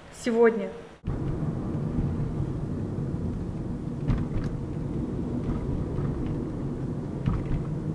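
A car engine and tyres rumble steadily while driving.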